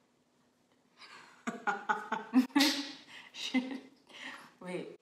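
A young woman talks and laughs close by.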